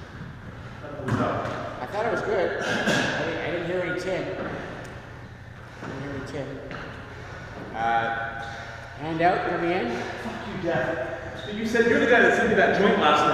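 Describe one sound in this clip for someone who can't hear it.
A man talks casually in an echoing room.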